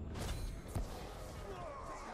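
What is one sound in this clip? Metal blades strike with sharp clangs.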